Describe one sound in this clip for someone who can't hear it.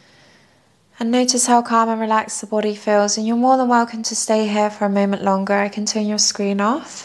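A woman chants in a low, drawn-out voice nearby.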